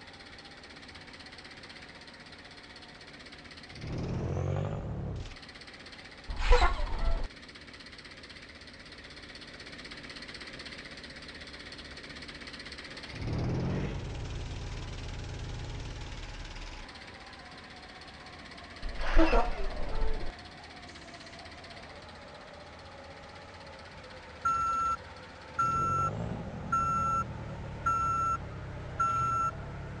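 A bus engine idles steadily.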